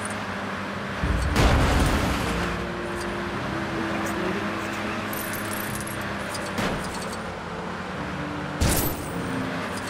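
A small car engine hums steadily.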